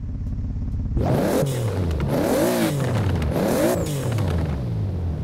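A sports car engine revs up and down again and again.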